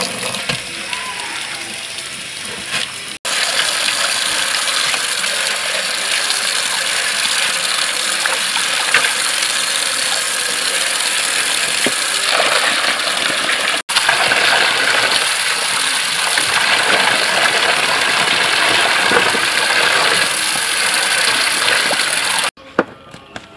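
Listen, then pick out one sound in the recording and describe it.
Water pours steadily from a hose into a metal basin.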